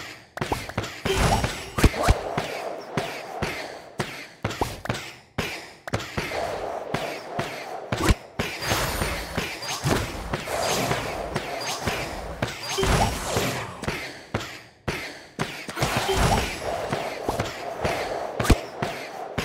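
Game sound effects of magic attacks burst and chime rapidly.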